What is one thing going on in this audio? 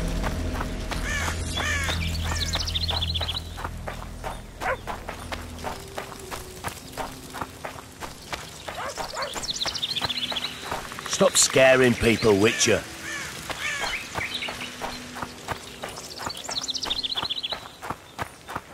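Birds chirp and trill in the trees.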